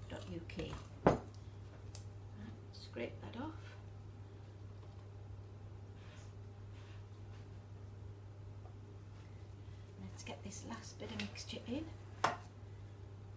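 A spoon scrapes and taps against a bowl.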